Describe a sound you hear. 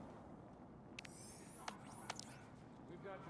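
Short electronic clicks and chimes sound in quick succession.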